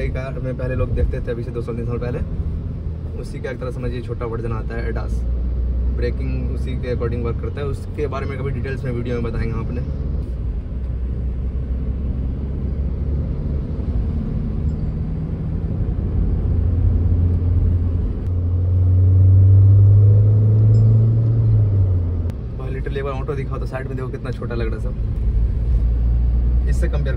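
A car engine and tyres rumble steadily on the road.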